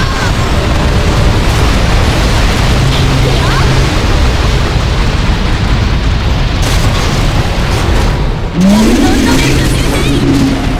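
Magic spells blast and crackle in a rush of noisy bursts.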